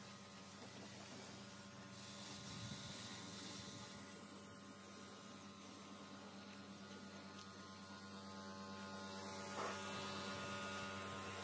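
A pressure washer's motor hums steadily.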